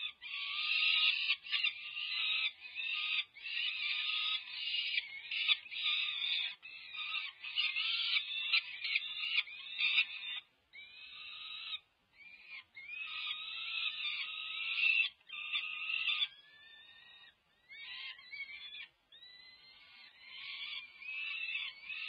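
Young falcons screech and wail loudly and repeatedly, close by.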